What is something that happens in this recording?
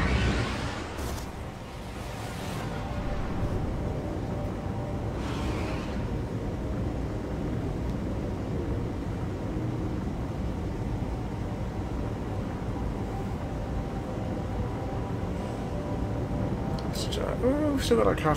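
Spaceship engines rumble steadily and deeply.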